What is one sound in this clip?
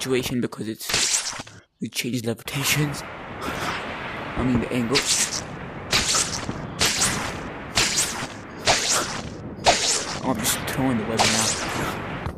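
Ice picks strike and scrape against stone.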